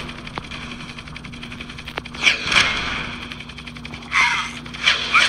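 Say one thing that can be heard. A helicopter's rotor whirs steadily.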